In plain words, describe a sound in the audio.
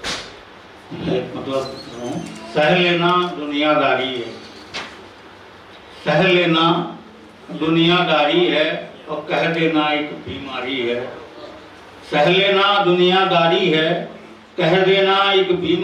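A middle-aged man speaks calmly and slowly into a microphone, heard through a loudspeaker.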